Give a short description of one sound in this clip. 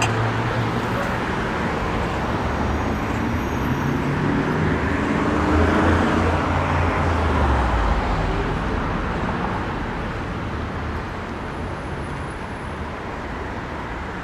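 City traffic hums steadily nearby outdoors.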